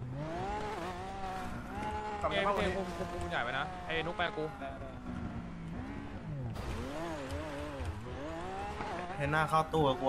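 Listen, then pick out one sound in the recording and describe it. A car engine revs and roars as the car climbs a steep slope.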